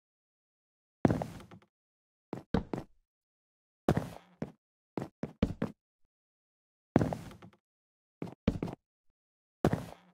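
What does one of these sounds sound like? Wooden blocks land with dull knocks, one after another.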